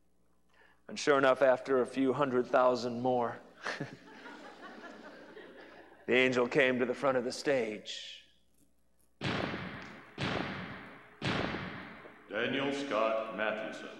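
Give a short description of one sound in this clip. A man speaks with emotion through a microphone in a large echoing hall.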